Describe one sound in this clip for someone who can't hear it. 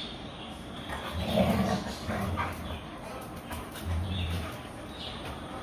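Dogs growl playfully as they tussle.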